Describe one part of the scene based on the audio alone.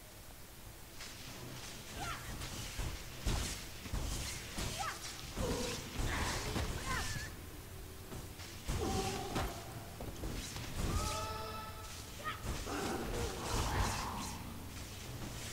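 Electric spells crackle and burst in quick blasts.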